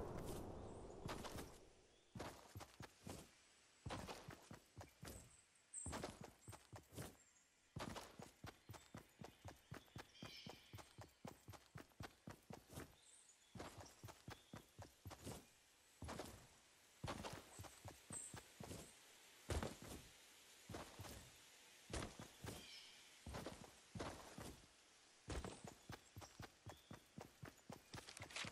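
Footsteps thud quickly and steadily over grass.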